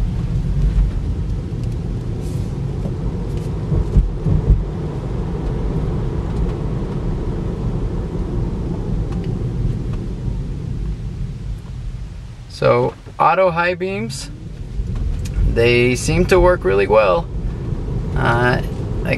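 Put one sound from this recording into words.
A car's tyres rumble steadily on the road, fading as it slows and rising again as it speeds up.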